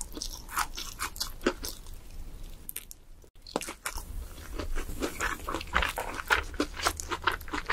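A young woman chews crunchy fried food close to a microphone.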